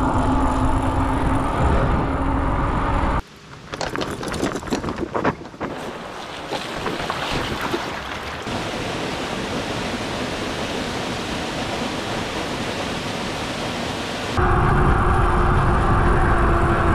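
Wind buffets loudly while riding a bike.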